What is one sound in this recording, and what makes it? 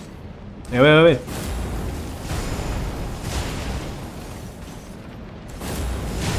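A burst of fire crackles and roars.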